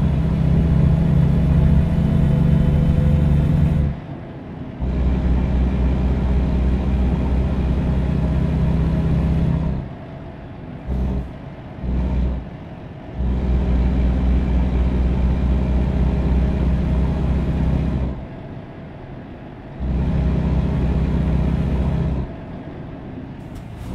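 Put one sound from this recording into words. A truck engine drones steadily, dropping away and surging back several times.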